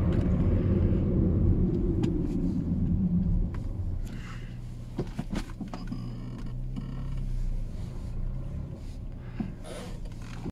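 A small car engine hums and rumbles while driving.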